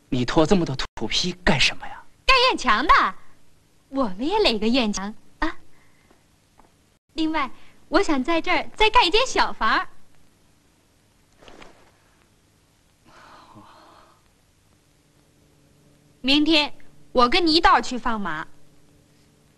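A young woman speaks cheerfully close by.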